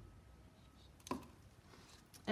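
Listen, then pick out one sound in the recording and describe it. A plastic cup taps down on a plastic sheet.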